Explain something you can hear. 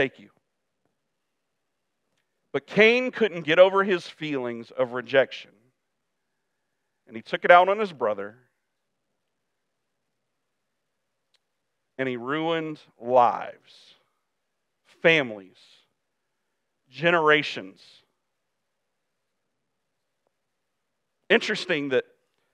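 A man speaks calmly through a microphone, in bursts with long pauses.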